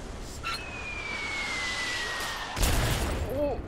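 Missiles whistle as they fall, with the pitch sliding down.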